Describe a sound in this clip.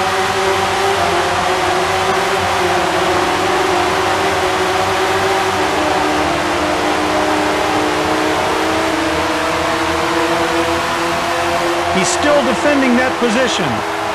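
A racing car engine whines at high speed, rising and falling as it shifts gears.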